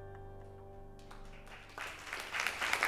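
A band plays a held chord in a large hall.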